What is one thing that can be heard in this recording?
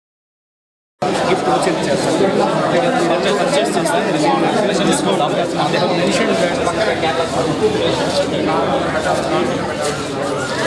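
A crowd of men chatter all around.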